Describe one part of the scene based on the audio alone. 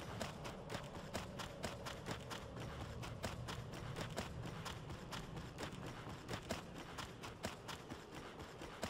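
Armoured footsteps thud quickly on stone.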